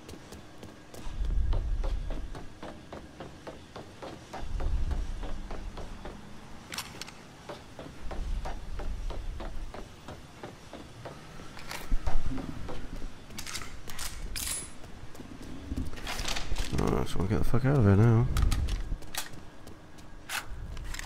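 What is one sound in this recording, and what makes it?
Footsteps clatter quickly on metal grating and stone.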